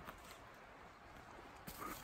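Footsteps crunch on a dirt forest path.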